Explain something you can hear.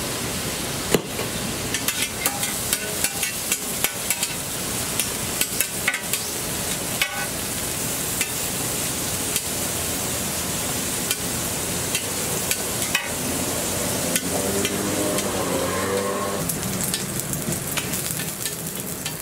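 A metal spatula scrapes and clicks against a griddle.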